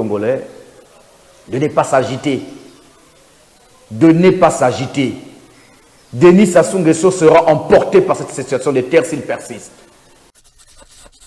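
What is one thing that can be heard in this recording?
A man speaks emphatically and with animation close to a microphone.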